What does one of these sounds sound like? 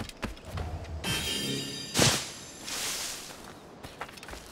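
A figure dives and lands with a rustling thump in a hay cart.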